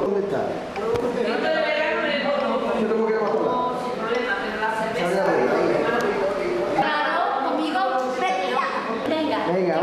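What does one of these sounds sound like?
A young woman talks animatedly in playful voices close by.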